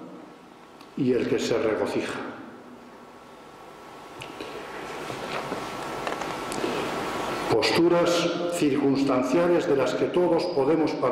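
An elderly man speaks calmly, heard through a microphone in a room that echoes a little.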